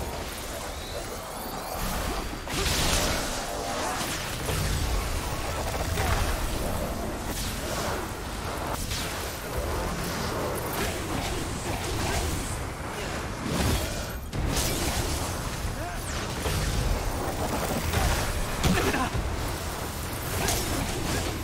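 A young man talks with animation through a microphone, close by.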